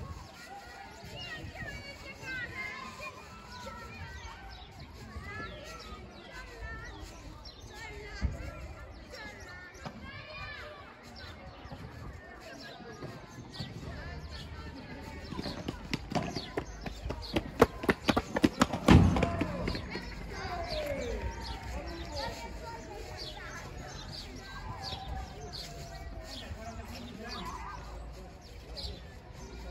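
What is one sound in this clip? Men call out nearby on an outdoor court.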